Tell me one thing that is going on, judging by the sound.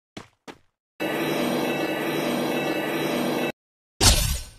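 A deep shimmering hum swells as a glowing wall rises up.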